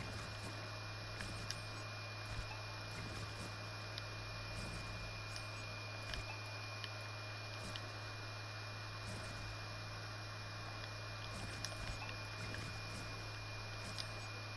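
Building pieces click into place in a video game.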